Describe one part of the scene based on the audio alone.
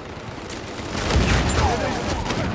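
A shotgun fires with a loud blast.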